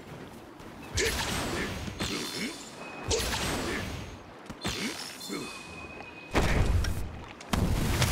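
Water splashes loudly as a large creature lunges through it.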